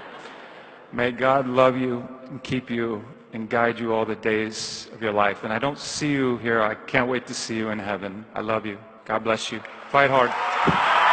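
A man speaks with passion through a microphone in a large hall.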